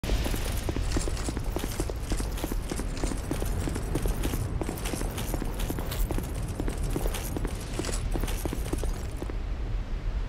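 Armoured footsteps run on stone.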